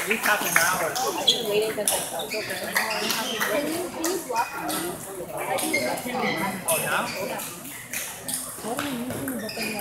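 Ping pong balls click against paddles and tables in quick rallies.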